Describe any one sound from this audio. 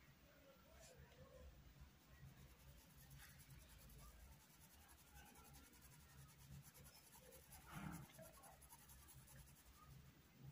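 A paintbrush strokes softly across cloth.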